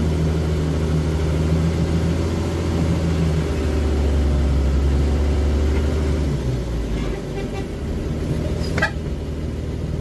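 An old car engine drones loudly from close by, then eases off.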